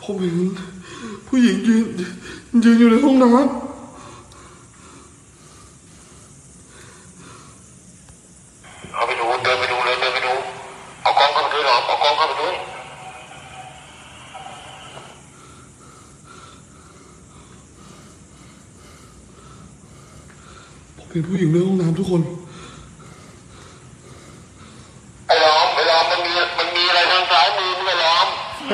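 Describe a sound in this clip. A man speaks in a hushed voice close by.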